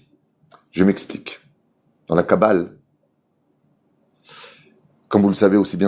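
A middle-aged man speaks calmly and deliberately into a close microphone.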